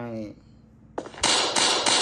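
A gun fires a single shot.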